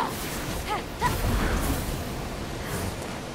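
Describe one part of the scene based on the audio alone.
Crackling magical energy bursts out with a loud whoosh.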